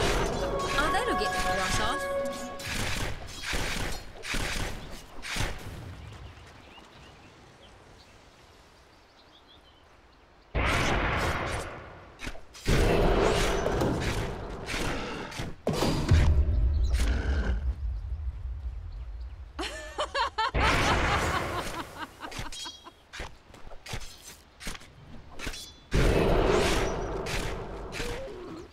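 Game spell effects whoosh, crackle and clash in bursts.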